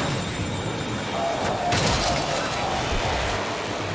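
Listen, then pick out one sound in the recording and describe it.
A gun fires loudly in rapid shots.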